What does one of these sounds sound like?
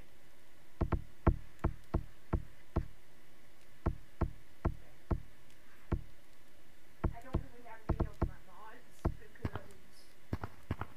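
Heavy hands thump on the ground in quick, uneven steps.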